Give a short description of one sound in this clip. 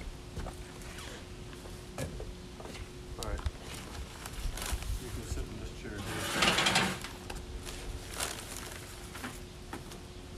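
Footsteps thud on a wooden deck close by.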